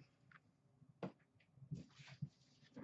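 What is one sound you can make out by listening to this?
Cards are dropped into a plastic box with soft taps.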